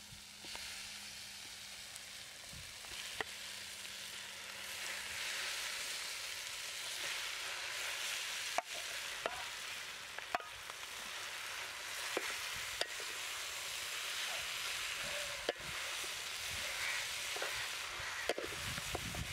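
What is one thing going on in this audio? A metal spatula scrapes and clinks against a metal bowl.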